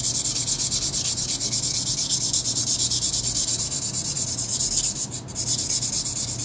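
Sandpaper rubs over a metal lighter in rapid strokes.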